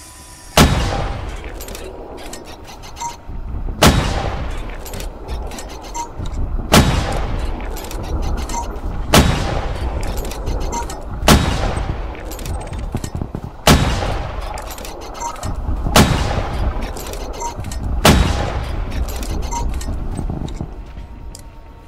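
Heavy booming blasts go off every few seconds, each rumbling away.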